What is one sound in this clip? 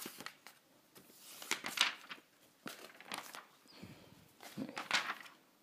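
Paper pages rustle and flap as they are turned by hand.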